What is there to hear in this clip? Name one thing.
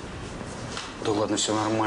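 A man talks in reply.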